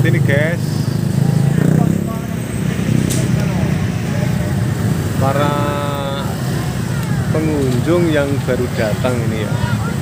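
A motorbike rides past.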